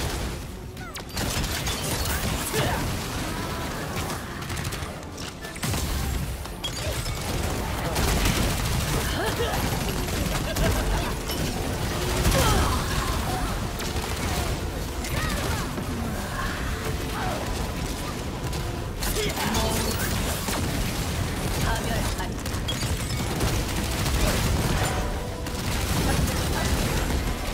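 Magical spell effects blast and crackle in a fast game battle.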